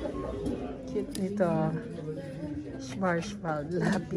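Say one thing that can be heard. Wooden pencils clatter in a wicker basket.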